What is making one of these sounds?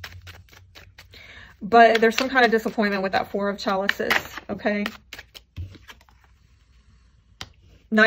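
Playing cards slide and tap onto a table.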